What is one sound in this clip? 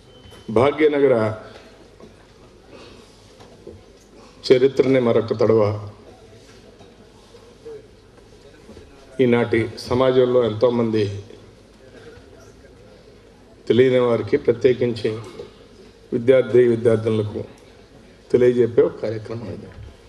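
A man speaks loudly through a microphone and loudspeakers in a large hall, in short phrases with pauses.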